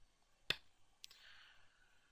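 A game stone clicks onto a board.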